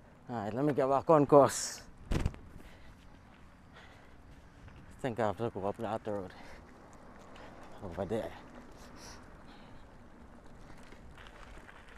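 Bicycle tyres roll over a bumpy dirt track.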